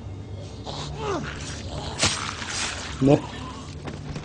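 A hammer strikes a head with a wet, heavy thud.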